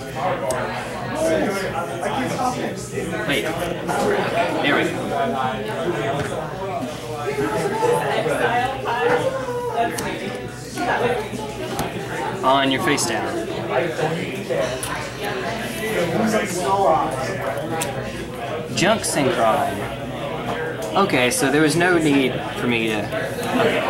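Playing cards are slid and set down on a soft mat.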